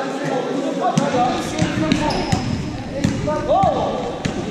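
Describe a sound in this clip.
A ball bounces on a hard floor, echoing in a large hall.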